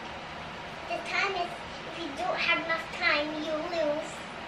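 A small child speaks quietly in the room.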